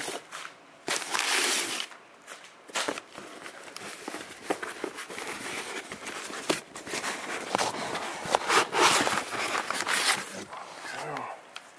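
Paper crinkles and rustles close by.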